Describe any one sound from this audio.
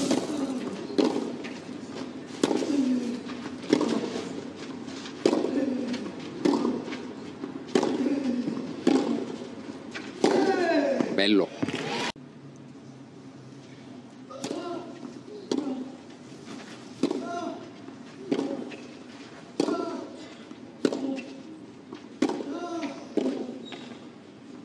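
A tennis ball is struck back and forth with sharp pops on an open court.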